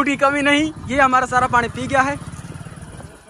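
A young man speaks loudly and with animation close by.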